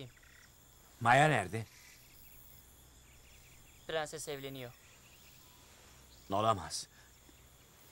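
A middle-aged man answers in a low, worried voice, close by.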